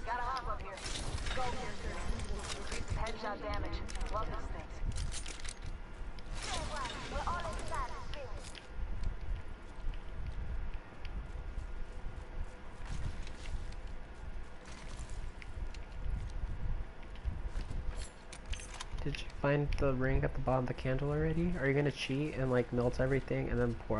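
A young woman talks casually into a microphone.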